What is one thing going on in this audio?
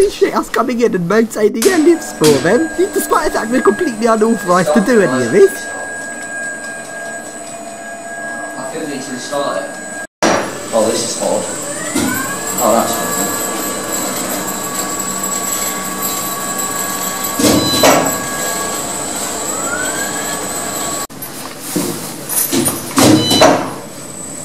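A large electric motor hums steadily with a high whine.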